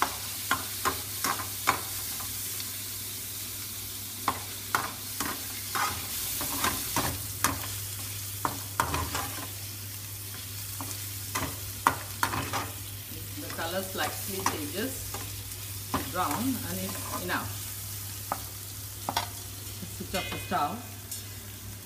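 Paneer sizzles as it fries in oil.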